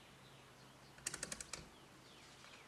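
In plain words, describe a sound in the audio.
Metal probes tap and click against metal.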